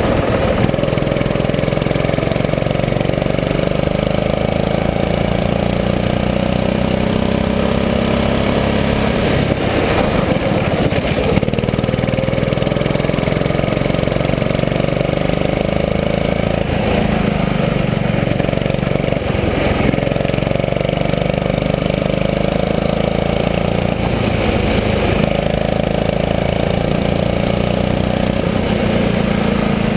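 A go-kart engine drones loudly close by, its pitch rising and falling with the throttle.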